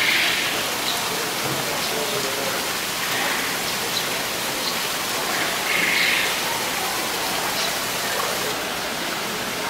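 Water splashes steadily from a small waterfall.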